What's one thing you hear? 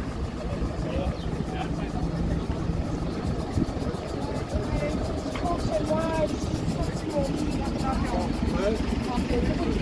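Men and women chat casually nearby outdoors.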